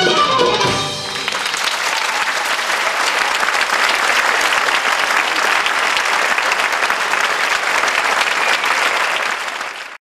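Coins on a dancer's hip belt jingle and shimmer rapidly.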